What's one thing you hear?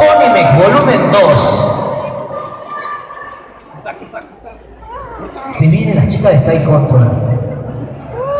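A group of children shout and sing loudly together in a large echoing hall.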